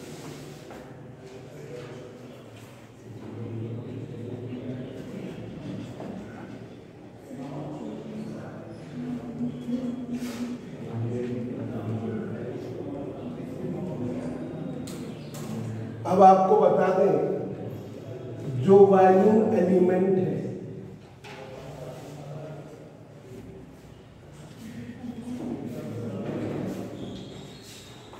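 A man lectures calmly nearby.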